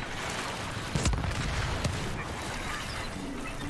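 A spacecraft roars past overhead.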